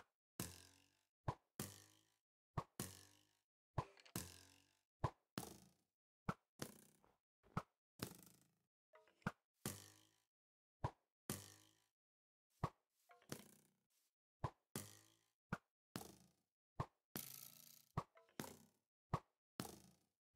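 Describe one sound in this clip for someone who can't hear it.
Game hits thud repeatedly in quick succession.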